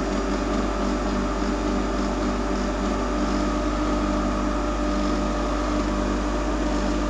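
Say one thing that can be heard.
A pump motor hums steadily.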